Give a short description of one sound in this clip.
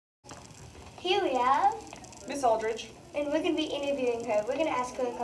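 A young girl talks calmly close by.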